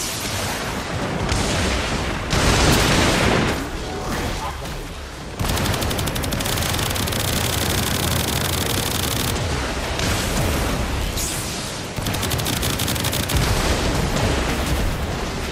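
Electric energy crackles and buzzes loudly.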